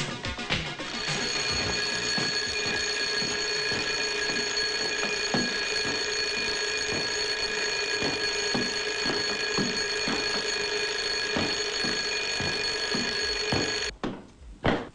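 An alarm clock rings loudly and steadily, then stops abruptly.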